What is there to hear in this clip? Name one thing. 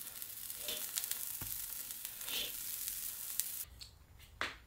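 Steam hisses steadily from a wok.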